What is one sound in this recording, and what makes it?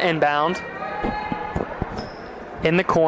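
A basketball bounces on a wooden floor in a large echoing gym.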